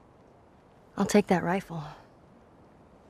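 A young girl speaks firmly, close by.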